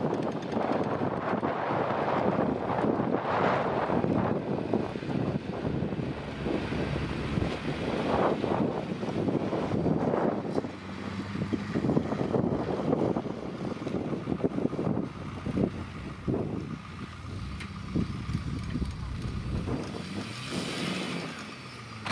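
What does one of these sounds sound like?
Tyres rumble and slip over bumpy grass.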